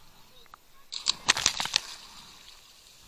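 A person jumps into the water with a loud splash.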